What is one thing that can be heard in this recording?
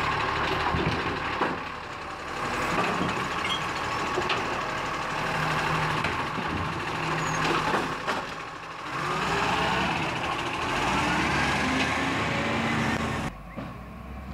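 A hydraulic arm whines as it lifts a bin.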